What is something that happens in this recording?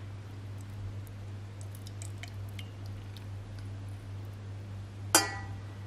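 Liquid pours into a glass jar.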